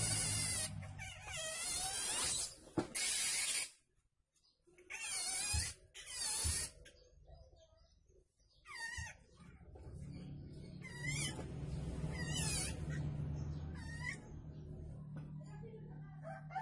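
A thin wire scrapes and clicks against a metal rod.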